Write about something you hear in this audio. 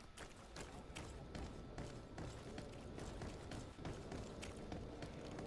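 Footsteps run quickly on a hard street.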